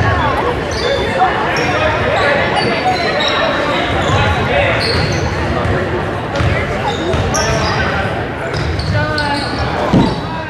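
A crowd of spectators talks and calls out in a large echoing gym.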